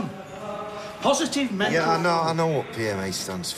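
A man answers groggily.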